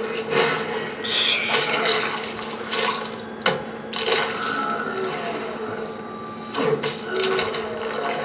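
Bones crack loudly during a slow brutal blow in a fighting game.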